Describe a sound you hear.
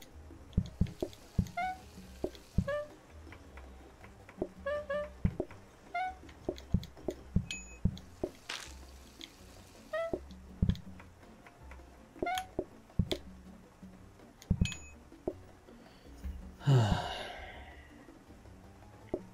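Short chimes and pops from a video game sound again and again.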